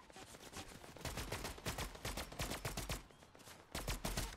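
Footsteps thud quickly over the ground.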